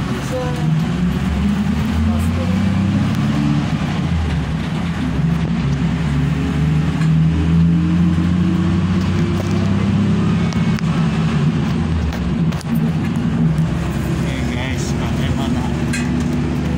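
A bus engine hums and rumbles steadily.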